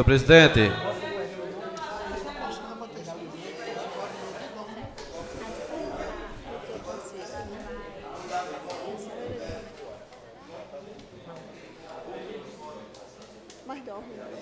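People murmur quietly in the background.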